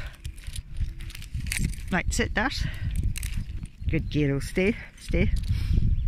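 Dry grass rustles under a dog's paws.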